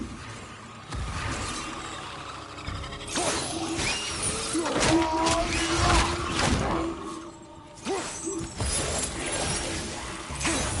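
Axe blows and metal clashes of a fight ring out loudly.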